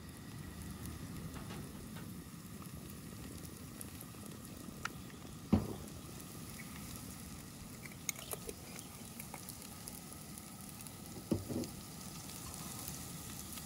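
A spice shaker rattles over a pan.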